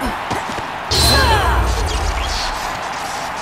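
A judoka's body thuds onto a mat.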